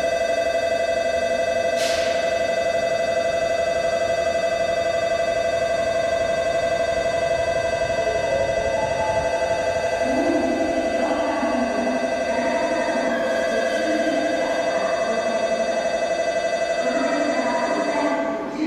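A train rolls slowly into a station with a steady high whine.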